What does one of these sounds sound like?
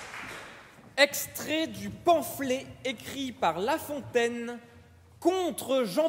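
A man sings in a large, echoing hall.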